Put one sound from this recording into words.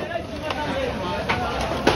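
A wicker basket creaks and rustles as it is handled.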